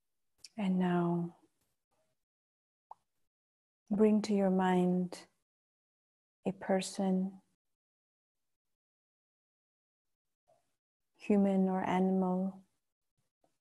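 A woman chants softly and slowly in long held tones, close to a microphone, with pauses between phrases.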